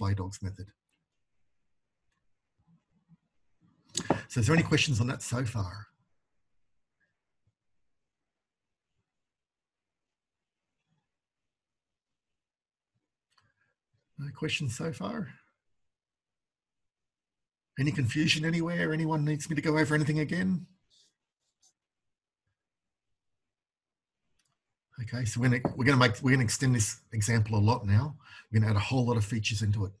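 A man speaks calmly into a microphone, in bursts with long pauses.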